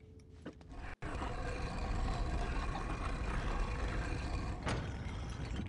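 A heavy crate scrapes across a stone floor.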